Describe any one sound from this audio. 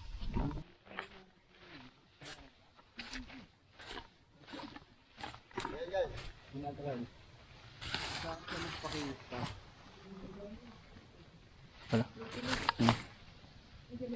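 Footsteps rustle through dry grass and weeds.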